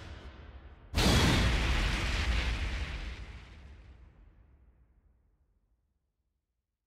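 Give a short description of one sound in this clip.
A sharp whoosh hits and fades with a low boom.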